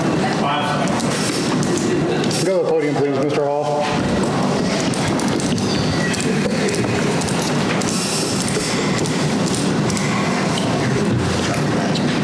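A crowd murmurs and talks in a large room.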